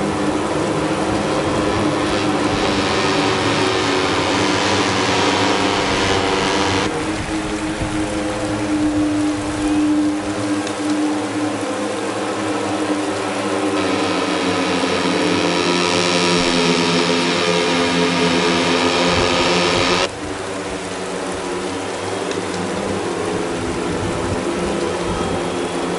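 Racing motorbike engines whine and buzz steadily.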